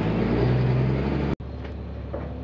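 An engine hums steadily inside a vehicle cab.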